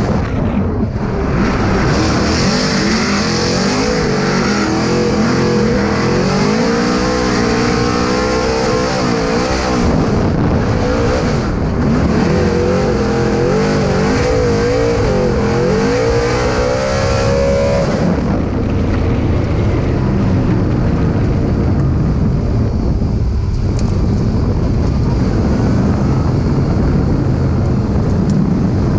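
A car engine roars loudly up close, revving up and down.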